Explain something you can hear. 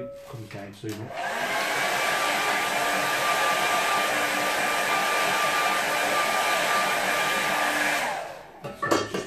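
A hair dryer blows with a loud steady whir.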